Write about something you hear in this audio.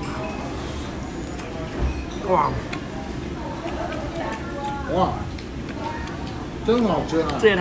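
A young man chews noisily.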